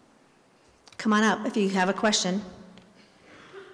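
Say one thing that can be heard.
A woman speaks briefly into a microphone.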